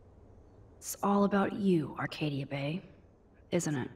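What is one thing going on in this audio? A young woman speaks quietly to herself.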